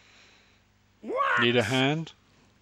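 An elderly man shouts in surprise.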